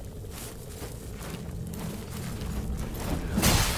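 A torch fire crackles softly.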